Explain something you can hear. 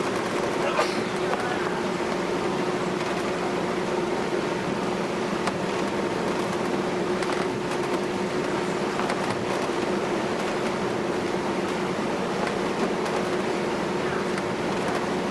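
Waves wash against a ship's hull.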